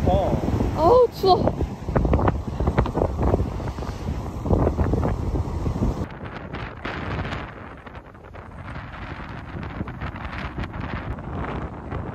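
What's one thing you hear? Sea waves crash and wash over rocks.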